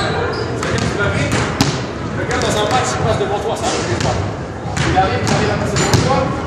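A basketball is dribbled on a hardwood floor in an echoing gym.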